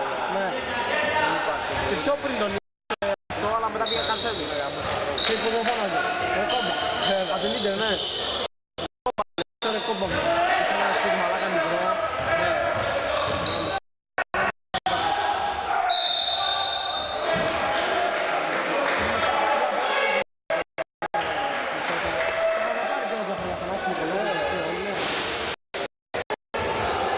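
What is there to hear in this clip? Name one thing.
Men shout and call out to each other across a large echoing hall.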